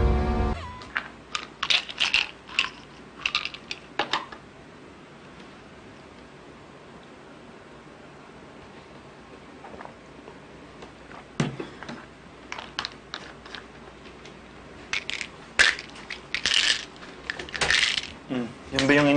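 Pills rattle in a small plastic bottle.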